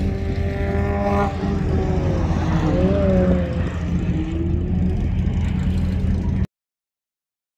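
A car engine roars and revs as a car speeds by.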